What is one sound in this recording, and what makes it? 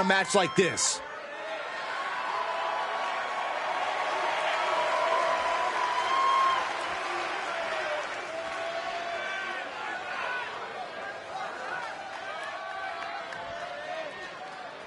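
A crowd cheers and murmurs in a large arena.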